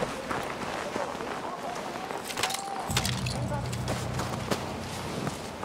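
Metal parts of a heavy gun clink and rattle as it is handled.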